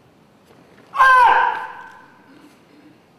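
A young man lets out a sharp, loud shout that rings in a large echoing hall.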